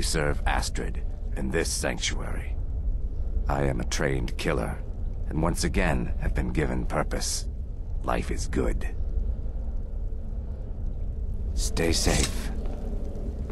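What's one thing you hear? A man speaks calmly and gravely, close by.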